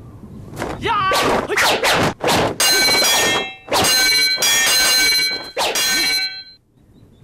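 Swords clash and ring with sharp metallic clangs.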